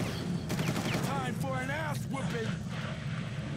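A young man speaks casually into a nearby microphone.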